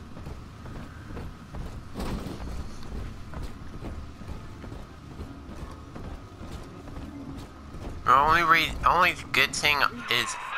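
Footsteps thud steadily across a hard floor.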